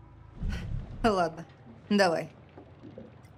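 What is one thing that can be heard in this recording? A young woman speaks a few short words up close.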